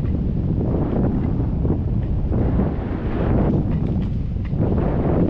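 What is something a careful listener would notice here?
Strong wind rushes and buffets loudly against a microphone outdoors.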